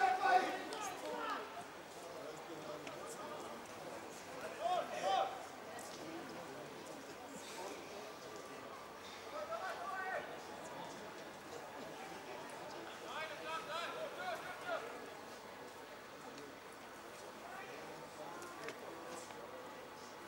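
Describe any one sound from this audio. Men shout across an open field in the distance.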